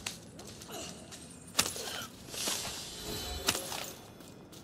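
Loose stones clatter in rubble.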